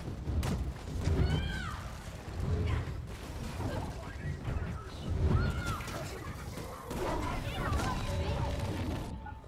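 Heavy punches and blows thud again and again.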